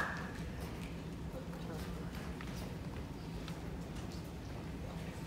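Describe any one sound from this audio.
Footsteps tap on a wooden stage in a large echoing hall.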